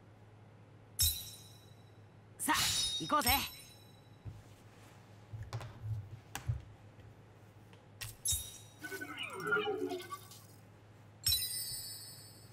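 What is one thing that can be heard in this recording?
Game chimes and jingles play in short bursts.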